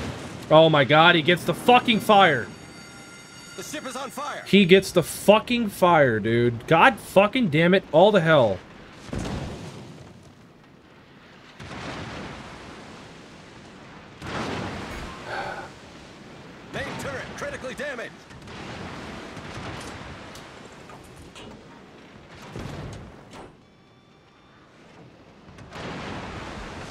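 Heavy naval guns fire with deep booms.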